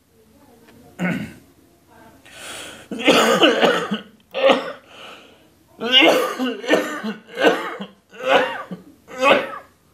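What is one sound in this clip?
A middle-aged man speaks calmly and closely into a microphone.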